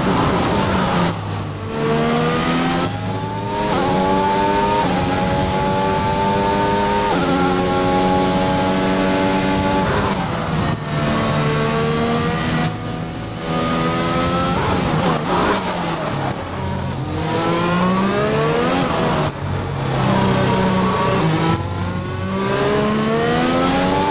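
A racing car engine screams, rising in pitch as it speeds up and dropping sharply at each gear change and braking.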